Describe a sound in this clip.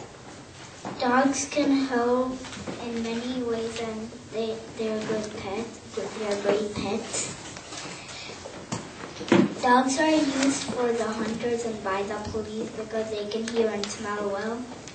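A young boy speaks into a microphone, heard through a loudspeaker in a room.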